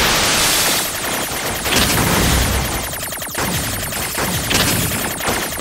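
Rapid electronic shots fire in a video game.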